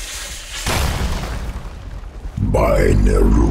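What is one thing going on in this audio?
Weapons clash and thud in a fantasy battle.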